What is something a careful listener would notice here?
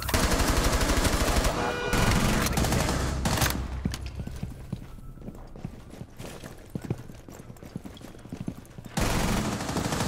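Rapid automatic gunfire rattles loudly.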